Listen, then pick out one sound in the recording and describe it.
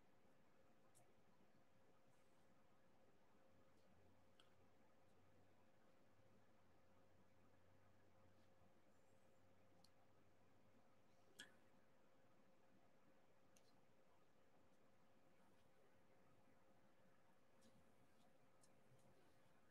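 A pen tool taps and clicks softly as small beads are pressed into place.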